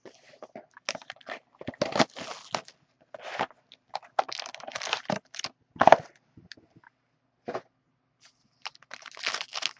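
Plastic wrap crinkles and rustles as it is torn off.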